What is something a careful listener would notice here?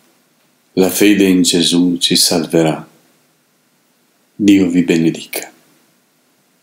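A middle-aged man reads aloud calmly, close by.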